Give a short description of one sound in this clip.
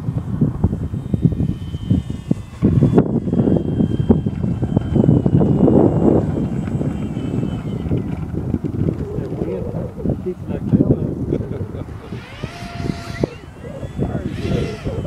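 A model plane's small motor whines as it rolls along.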